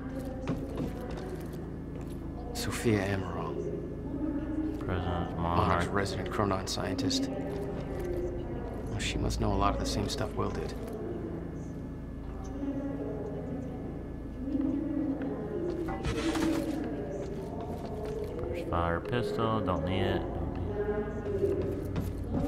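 A young man talks into a microphone.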